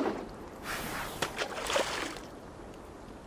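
A fishing line swishes through the air as it is cast.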